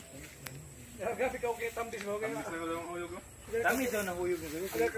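Young men talk casually outdoors.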